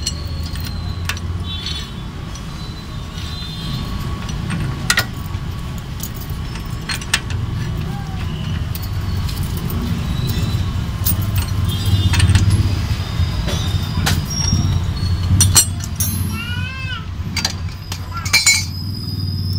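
A metal bar clanks against a wheel hub.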